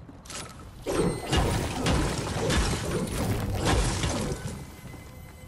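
A pickaxe strikes and smashes wood with sharp thuds.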